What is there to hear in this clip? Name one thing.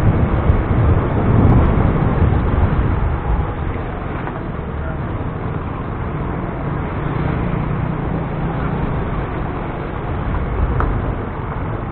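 Wind rumbles against the microphone.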